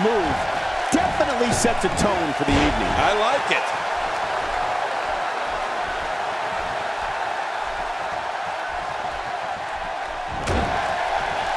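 Bodies thud onto a wrestling mat.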